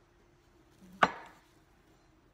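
A loud knock sounds on a wooden board.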